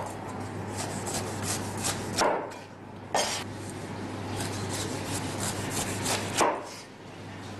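A knife slices through a pineapple's tough skin with crunching scrapes.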